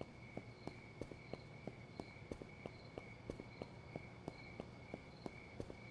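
Footsteps tap quickly and steadily on pavement.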